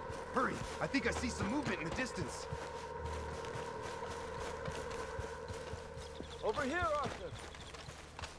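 Footsteps crunch quickly over gravel and dry grass.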